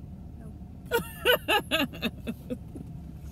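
A young boy laughs.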